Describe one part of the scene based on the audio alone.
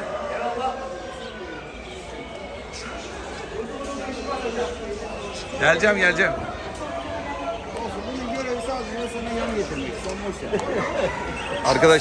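Several men talk nearby.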